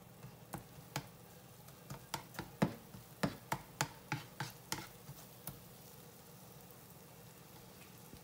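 Food sizzles softly in hot oil in a pan.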